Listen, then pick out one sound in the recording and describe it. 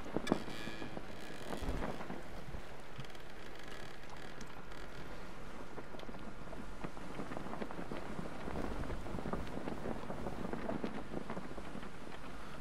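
Waves splash and lap steadily against a raft on open water.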